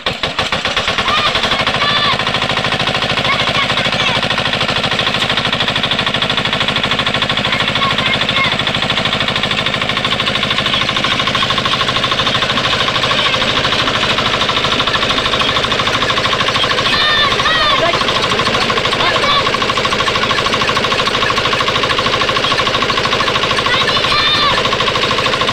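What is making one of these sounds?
A small engine chugs loudly and steadily.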